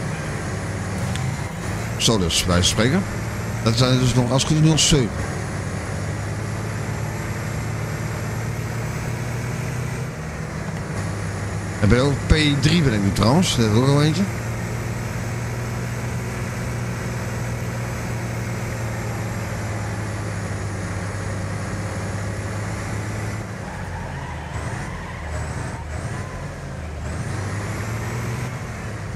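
A racing engine drones steadily.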